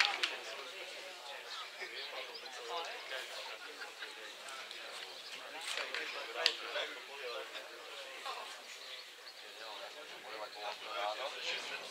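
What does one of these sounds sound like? Men talk close by, outdoors.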